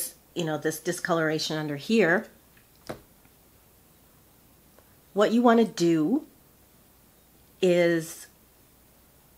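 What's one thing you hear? An older woman speaks calmly and close by.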